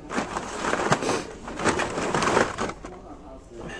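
Plastic toy packages rustle and clatter as they are handled close by.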